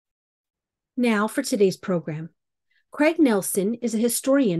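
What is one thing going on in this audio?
A woman speaks calmly into a microphone, heard through an online call.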